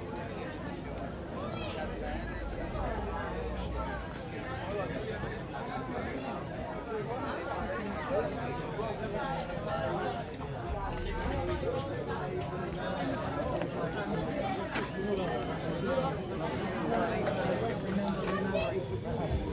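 A crowd of adults chatters nearby outdoors.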